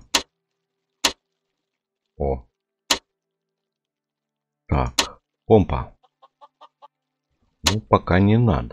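A game menu button clicks several times.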